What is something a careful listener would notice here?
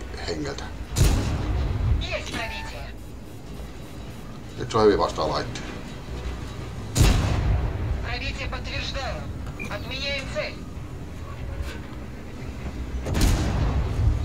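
Tank cannons fire with deep booms.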